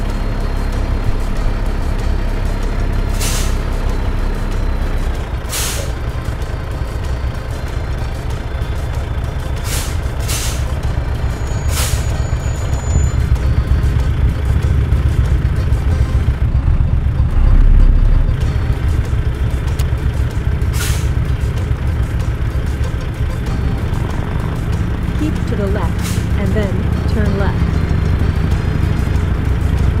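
A truck's diesel engine rumbles steadily as it drives.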